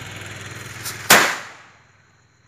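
A firework goes off with a loud bang.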